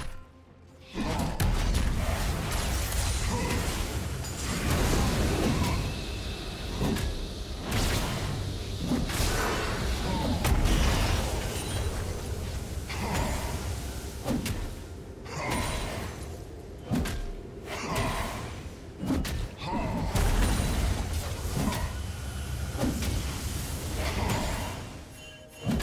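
Magic spells whoosh and blast during a video game battle.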